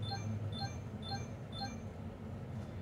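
Bright game chimes ring four times in quick succession.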